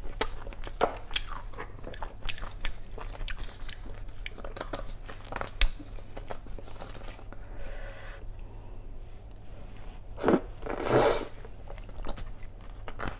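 A spoon clinks and scrapes against bone close to a microphone.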